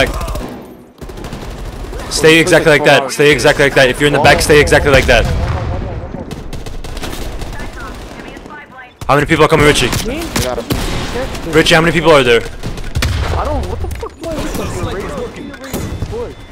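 A rifle fires sharp, loud cracks.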